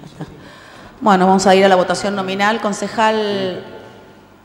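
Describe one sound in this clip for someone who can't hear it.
A woman speaks clearly through a microphone in a room with some echo.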